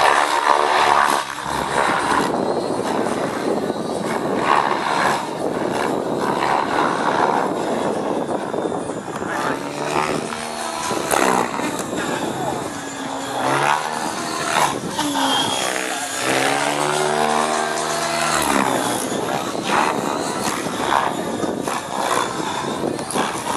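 A model helicopter's motor whines loudly, rising and falling in pitch as it swoops past.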